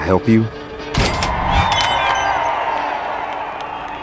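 A short musical fanfare plays.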